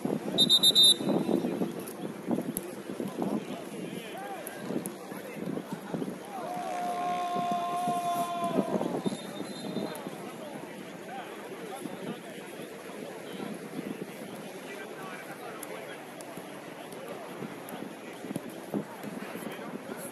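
Young men shout and call out to each other across an outdoor pitch.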